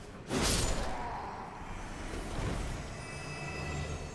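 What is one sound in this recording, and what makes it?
A ghostly spirit summon bursts and shimmers away.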